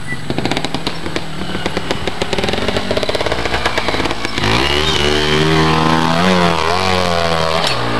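A dirt bike engine putters at low revs, then revs up loudly close by.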